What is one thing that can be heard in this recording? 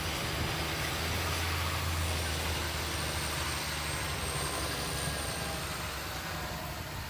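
A tractor engine rumbles nearby and fades away.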